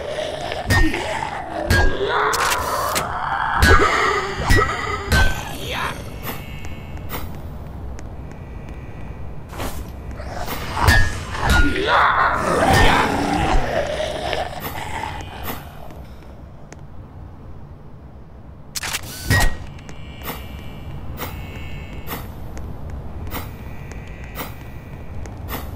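A ray gun fires repeated sharp electronic blasts.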